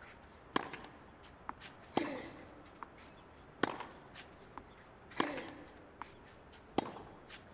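Tennis rackets strike a ball back and forth in a steady rally.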